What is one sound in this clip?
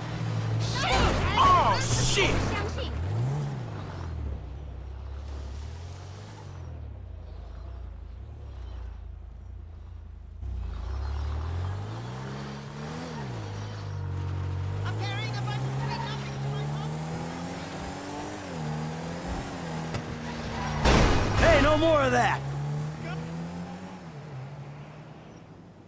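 A car engine revs up and down loudly.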